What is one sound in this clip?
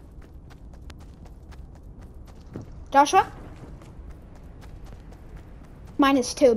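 Quick footsteps patter over grass.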